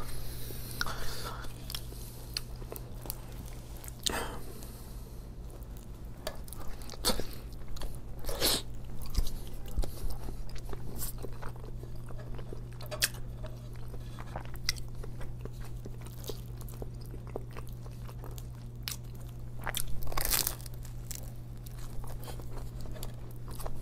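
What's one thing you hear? Crusty bread crackles as hands squeeze and pull apart a sandwich.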